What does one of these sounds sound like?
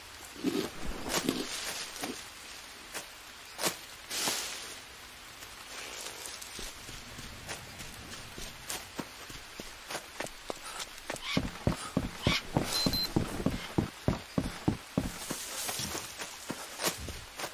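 Leaves rustle as plants brush past.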